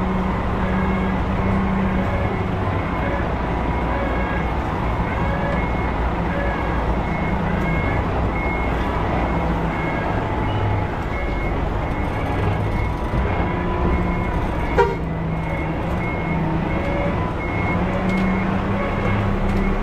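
A truck engine rumbles low and steady while reversing.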